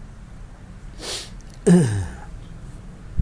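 A man clears his throat close to a microphone.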